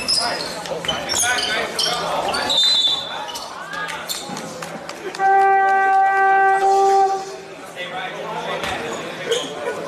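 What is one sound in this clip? Young players shout and call out in a large echoing gym.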